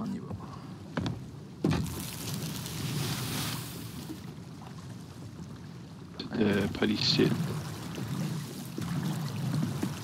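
Sea waves wash around a small wooden boat.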